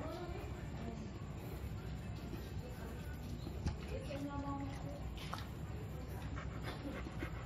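A dog pants heavily close by.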